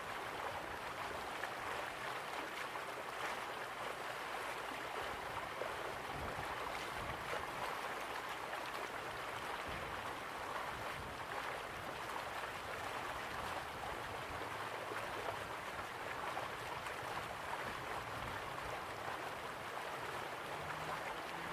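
A waterfall rushes and splashes steadily.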